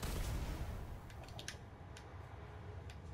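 A video game weapon fires rapid shots.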